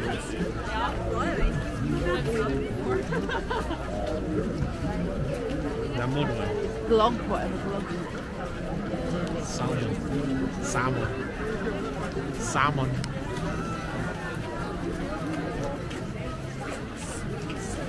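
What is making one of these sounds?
A dense crowd of men and women chatters all around outdoors.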